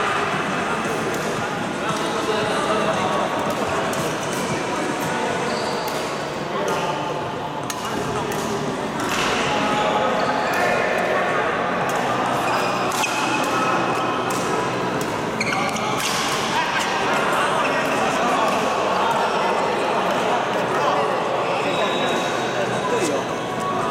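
Players call out and talk across the hall.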